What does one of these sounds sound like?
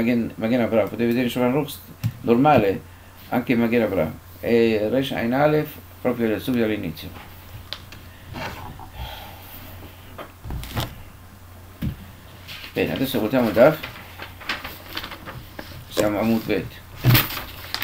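An elderly man speaks calmly and slowly, close to a microphone.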